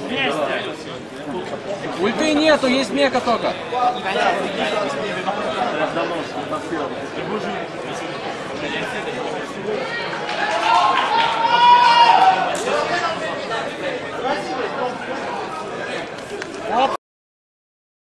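A crowd of young men chatters and murmurs in a large echoing hall.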